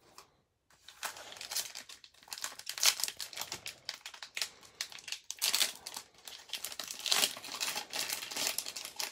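A foil wrapper crinkles and tears as fingers pull it open.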